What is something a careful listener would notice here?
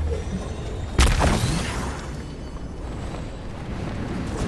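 A character in a video game launches into the air with a loud whoosh.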